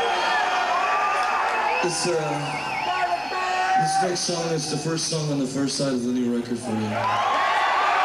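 A man sings into a microphone over loud music.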